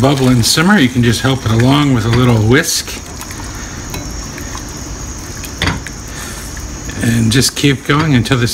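A whisk scrapes and clinks against a metal pan.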